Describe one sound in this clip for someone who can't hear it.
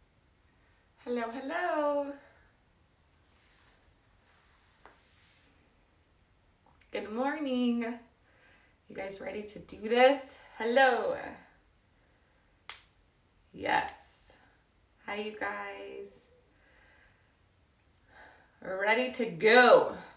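A young woman speaks cheerfully and close by, in short bursts with pauses.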